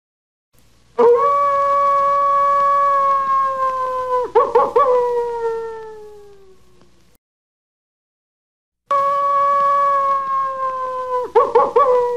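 A jackal gives long, high wailing howls that break into yips and slowly fade.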